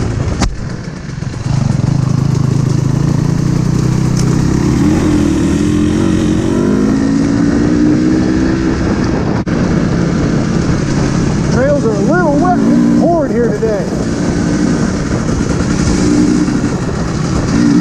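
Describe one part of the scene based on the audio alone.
A dirt bike engine roars close by, revving up and down.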